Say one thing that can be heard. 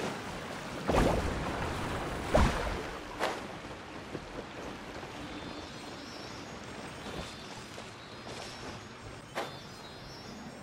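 Wind rushes past a gliding figure.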